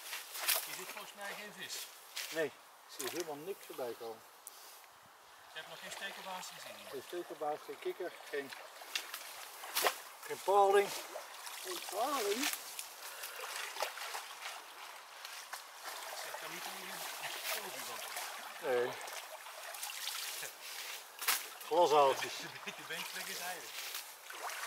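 An elderly man talks calmly, close by, outdoors.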